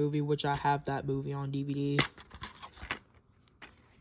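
A plastic case clicks open.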